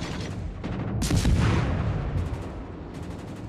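Heavy ship guns fire with a deep, rumbling boom.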